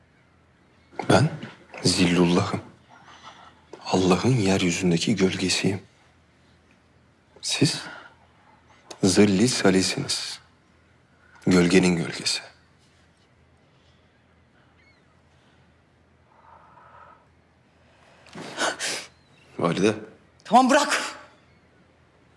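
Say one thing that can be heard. A man speaks in a low, serious voice, close by.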